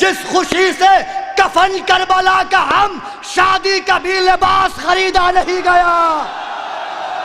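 A young man recites loudly and with passion through a microphone and loudspeakers.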